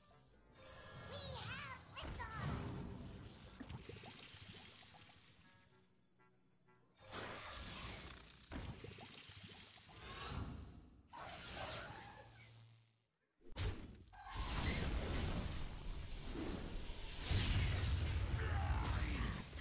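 Game sound effects chime and whoosh.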